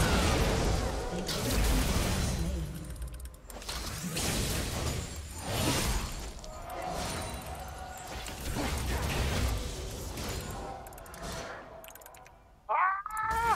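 Game battle effects clash and burst in quick bursts.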